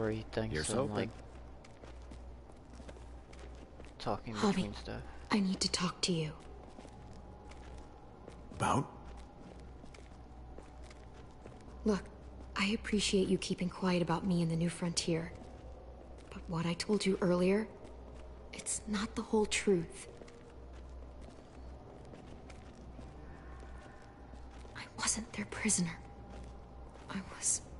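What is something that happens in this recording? A young woman talks calmly through a microphone.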